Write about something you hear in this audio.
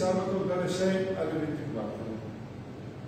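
A man speaks calmly nearby, briefly.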